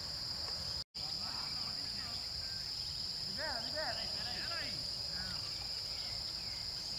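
Several men talk and call out to each other outdoors at a distance.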